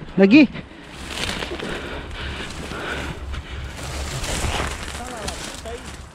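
Dry branches rustle and crackle.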